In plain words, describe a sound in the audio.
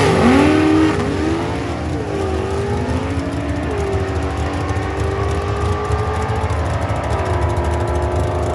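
A racing car engine roars loudly as it speeds away, rising in pitch through each gear change.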